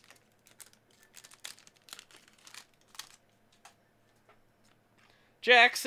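A foil card pack crinkles as hands tear it open.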